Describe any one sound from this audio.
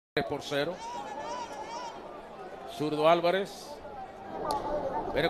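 A large crowd murmurs in a stadium.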